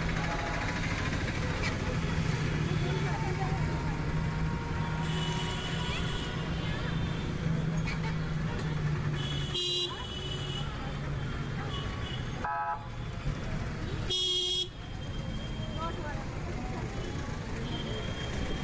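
Traffic rumbles steadily along a busy street outdoors.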